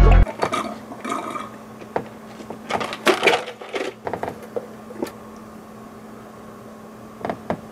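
A young man slurps a drink through a straw.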